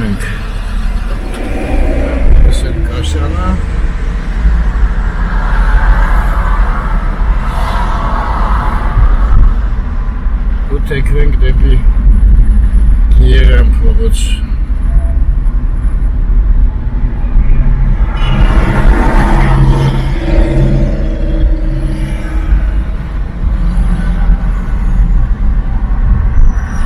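Tyres roll and rumble on the road, heard from inside a car.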